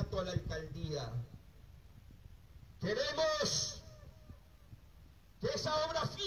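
A man speaks loudly and emphatically into a microphone over a loudspeaker, in bursts with pauses.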